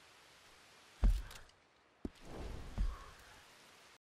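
Footsteps thud on soft grass outdoors.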